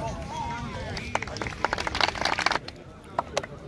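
Several men clap their hands.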